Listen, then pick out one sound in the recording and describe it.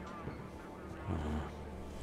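A metal locker door creaks open.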